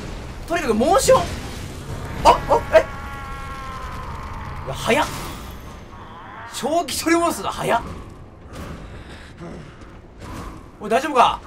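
A sword slashes and thuds against a large creature.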